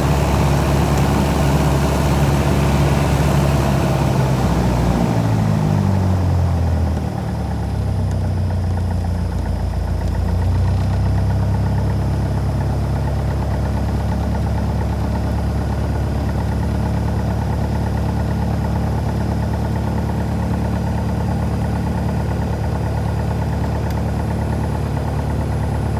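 A small plane's propeller engine drones loudly from inside the cabin.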